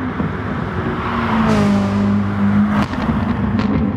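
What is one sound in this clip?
A race car roars past up close.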